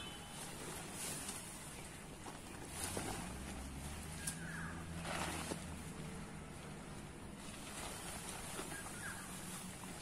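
Nylon tent fabric rustles and crinkles as it is pulled and shaken.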